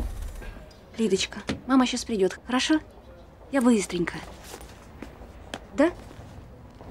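A young woman speaks anxiously close by.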